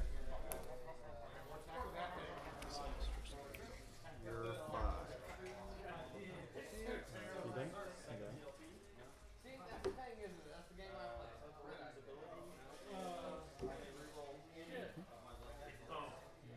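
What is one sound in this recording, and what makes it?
Small plastic game pieces tap and slide on a mat.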